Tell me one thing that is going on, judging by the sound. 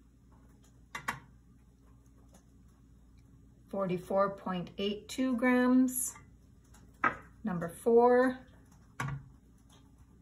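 A small block is set down on a scale with a soft knock.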